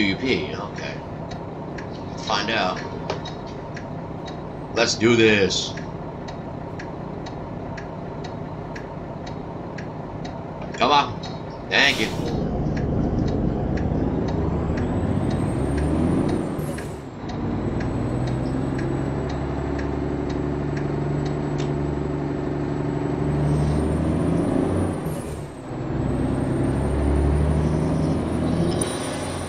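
A truck engine rumbles low and steadily, revving up and dropping back as gears change.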